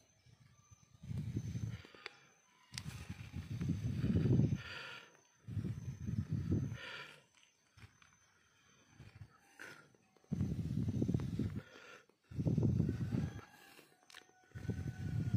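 Air is blown in long, strong puffs onto smouldering embers close by.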